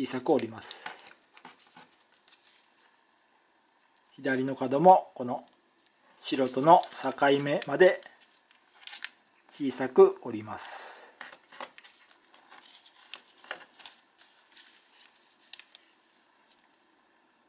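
Paper crinkles and rustles as it is folded and pressed flat.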